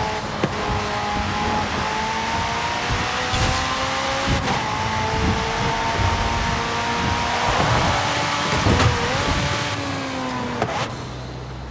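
A high-revving car engine roars as it speeds up and shifts gears.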